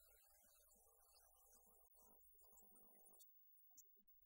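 A guitar plays softly.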